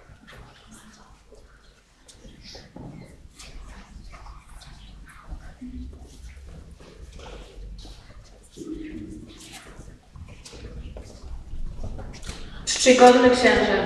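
A crowd of adults and children murmurs and chatters in a large echoing church.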